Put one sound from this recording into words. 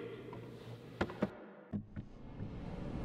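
Boxing gloves thump against each other a few times.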